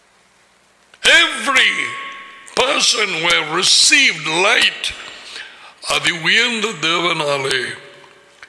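An elderly man speaks with animation into a nearby microphone.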